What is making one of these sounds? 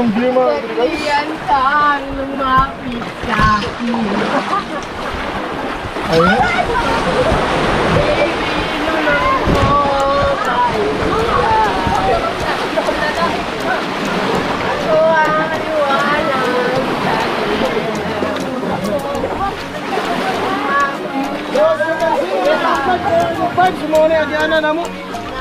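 Waves wash gently against rocks.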